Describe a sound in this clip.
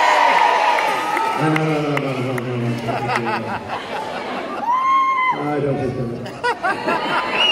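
A man sings into a microphone, heard through loudspeakers in a large echoing hall.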